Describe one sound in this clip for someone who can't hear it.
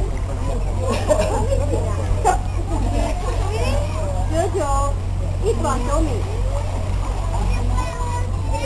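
Young children shout and chatter nearby.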